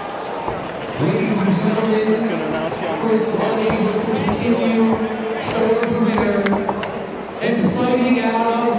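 A man announces loudly through a loudspeaker.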